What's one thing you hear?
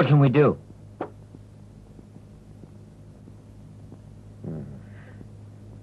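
A man speaks briefly and firmly.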